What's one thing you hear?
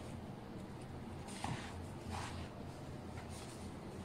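A sheet of flatbread rustles as it is folded.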